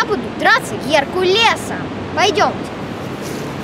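A young boy talks close by with animation.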